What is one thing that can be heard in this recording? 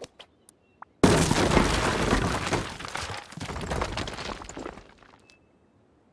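A heavy stone wall thuds into place with a long crumbling rumble.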